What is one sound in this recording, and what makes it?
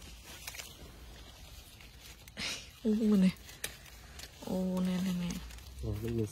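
Leaves rustle softly as a hand brushes through a plant.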